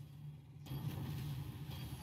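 Flames roar in a burst.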